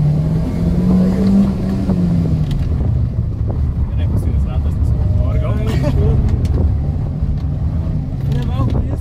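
A car engine hums and revs steadily inside the cabin.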